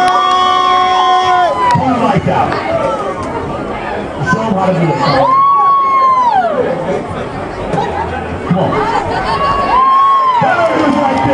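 People in a crowd whoop with high, rising and falling cries.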